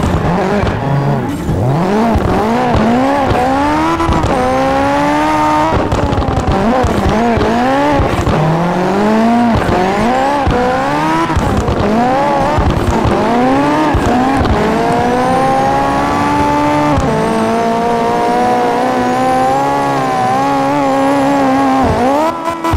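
A car engine revs up and down hard again and again.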